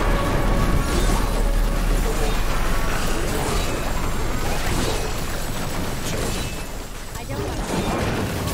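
Weapons strike and slash with heavy impacts.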